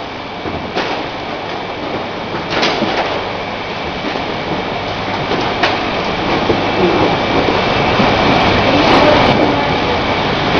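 Glass bottles clink as they move along a conveyor.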